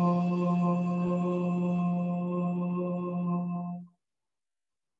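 A man chants a long, steady low note close by.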